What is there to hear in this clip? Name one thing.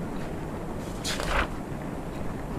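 A paper page flips over quickly.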